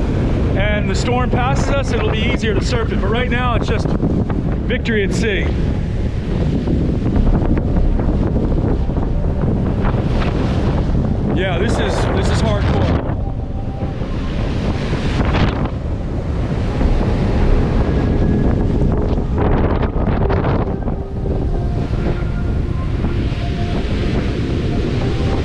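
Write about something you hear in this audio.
Strong wind roars across the microphone.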